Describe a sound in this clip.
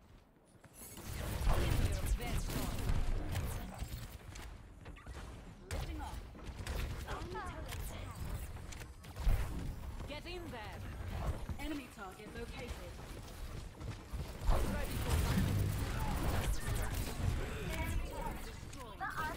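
Gunshots and energy blasts ring out in rapid bursts.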